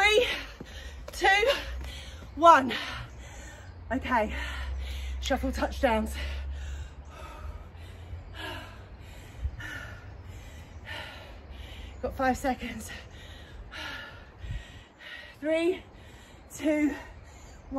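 A woman talks with animation, close by.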